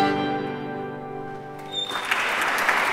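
Handbells ring a sustained chord that rings out in a resonant hall.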